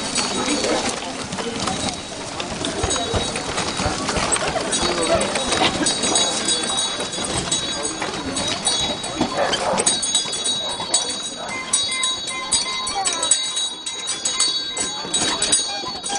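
A crowd of men and women murmurs and chatters nearby outdoors.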